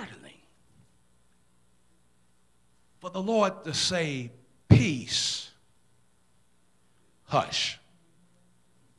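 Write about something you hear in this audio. A man preaches with animation into a microphone, his voice echoing through a large hall, in short bursts with pauses.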